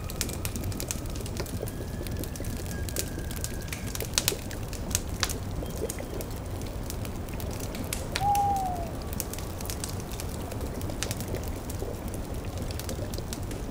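A cauldron bubbles softly.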